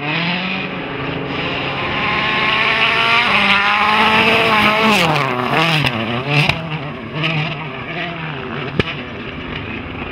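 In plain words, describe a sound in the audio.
A rally car engine roars and revs hard through gear changes.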